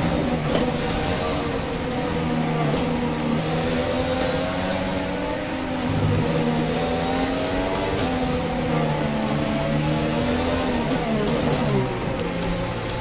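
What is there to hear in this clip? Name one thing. A racing car engine roars at high revs, rising and falling as the car speeds through corners.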